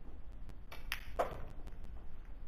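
Pool balls clack against each other.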